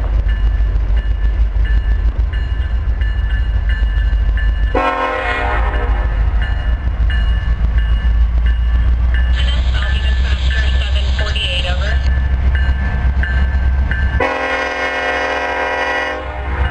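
A diesel locomotive rumbles as it approaches.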